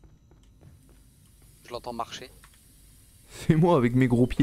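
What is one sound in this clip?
Steam hisses steadily from a leaking pipe.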